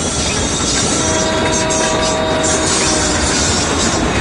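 A train horn blares close by.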